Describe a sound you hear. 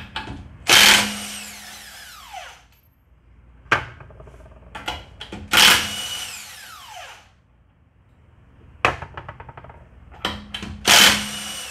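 A cordless impact wrench hammers in short, loud bursts.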